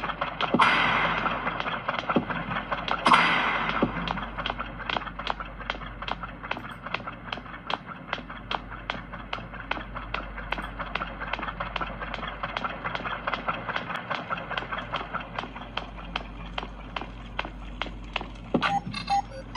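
Footsteps tread quickly and steadily on a hard floor.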